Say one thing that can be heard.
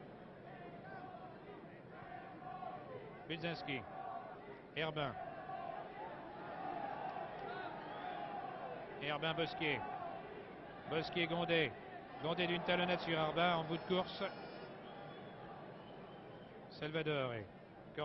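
A large crowd murmurs and roars in a stadium.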